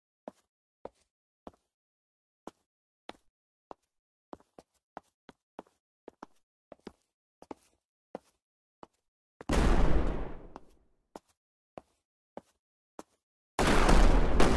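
Footsteps crunch steadily on snow.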